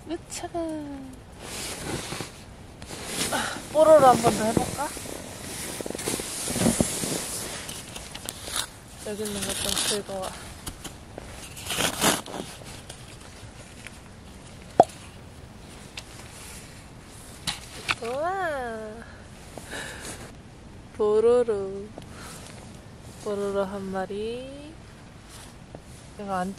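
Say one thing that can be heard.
Down jacket fabric rustles with movement.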